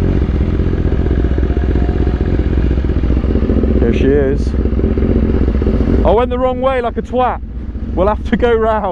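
A motorcycle engine rumbles steadily at idle close by.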